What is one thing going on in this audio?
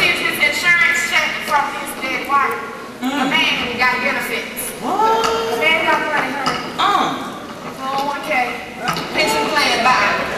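A second woman answers from across the stage.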